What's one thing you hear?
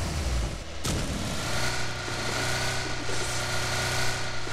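A car engine hums steadily as the car drives off.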